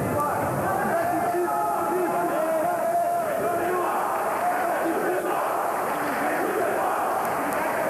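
A crowd of spectators shouts and cheers nearby.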